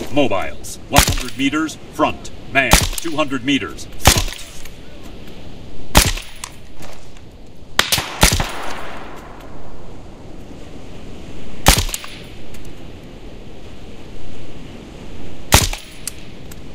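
Rifle shots crack loudly, one at a time, with a short echo.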